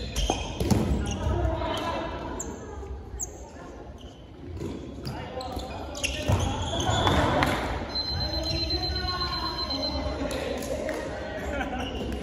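A ball bounces on a wooden floor in a large echoing hall.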